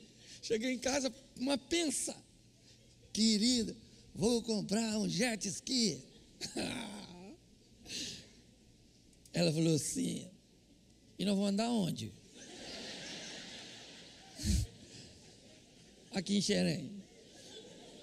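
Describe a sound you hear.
An elderly man speaks with animation through a microphone, in pauses, in a large echoing hall.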